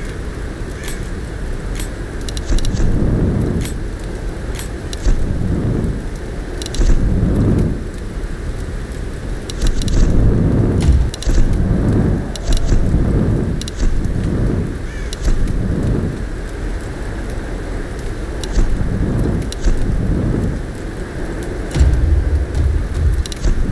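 Short interface clicks tick now and then as menu items are picked.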